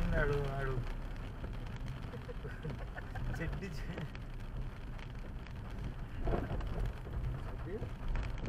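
A windscreen wiper sweeps across the glass.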